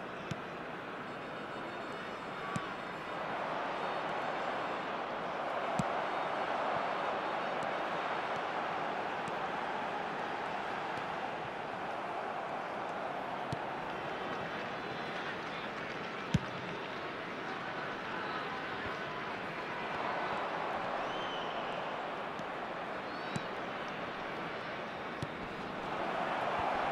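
A large stadium crowd roars and cheers steadily, swelling at times.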